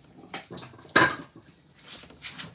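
Metal tools clank against each other.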